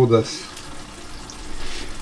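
Liquid is poured into a sizzling pan.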